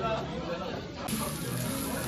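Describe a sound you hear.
A spatula scrapes fried rice across a hot griddle.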